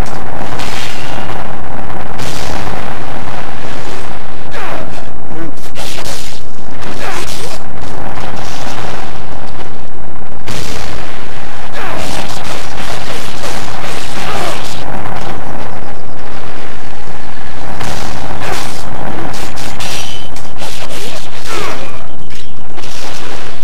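Swords clash and slash in quick, repeated strikes.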